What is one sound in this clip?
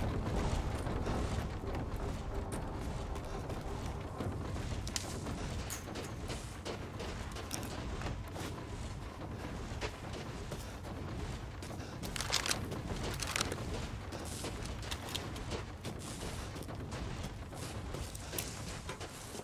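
Footsteps crunch through snow outdoors.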